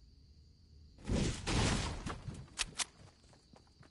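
A pickaxe strikes a wooden crate.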